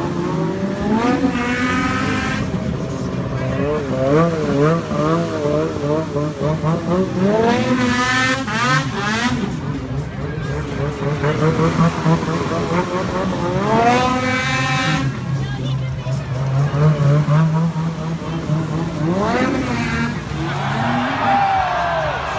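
Water sprays and splashes under the snowmobiles.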